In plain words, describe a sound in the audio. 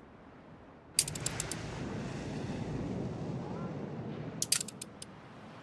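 Waves wash softly against a shore.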